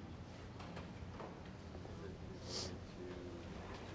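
A man sits down heavily in a chair, with clothes rustling.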